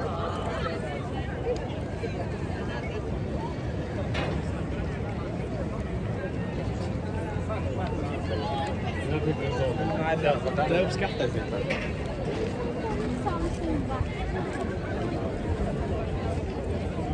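A crowd murmurs outdoors in a light wind.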